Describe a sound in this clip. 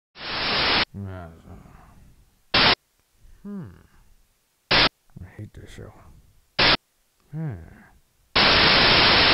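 Retro video game sound effects chime and bleep.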